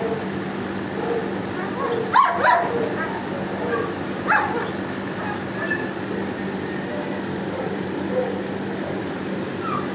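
A dog sniffs close by.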